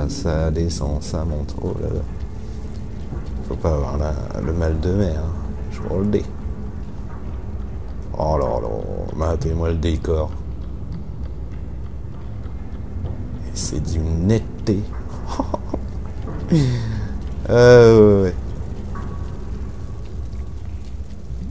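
Small footsteps clang on metal stairs.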